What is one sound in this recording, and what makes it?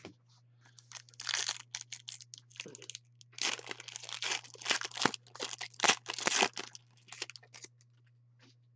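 A foil wrapper crinkles and tears open.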